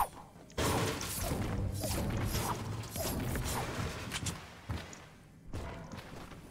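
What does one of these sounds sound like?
A pickaxe smashes loudly through a wooden wall.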